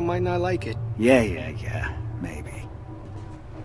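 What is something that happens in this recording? A second man answers casually nearby.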